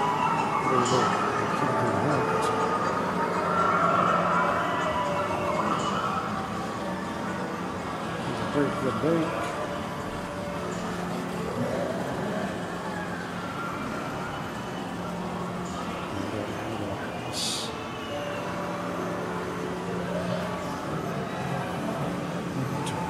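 Arcade game machines play beeping electronic tunes and jingles all around, in a busy, echoing room.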